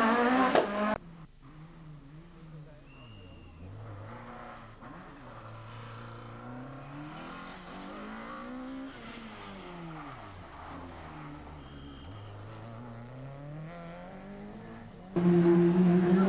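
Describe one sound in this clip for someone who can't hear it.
A rally car engine roars past farther off, rising and falling in pitch as it drives by.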